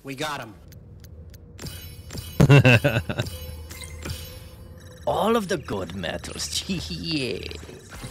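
Short electronic chimes ring as points tally up.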